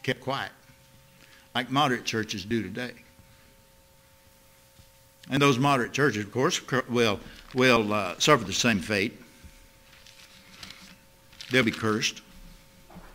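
An elderly man speaks with emphasis into a microphone, pausing between phrases.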